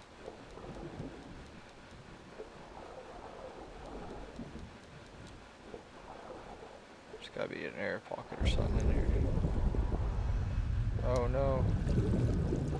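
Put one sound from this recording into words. Water swirls around a swimmer underwater with a low, muffled rumble.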